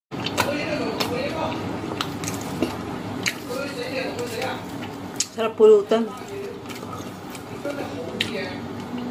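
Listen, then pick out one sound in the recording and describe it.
A woman chews food loudly and smacks her lips close by.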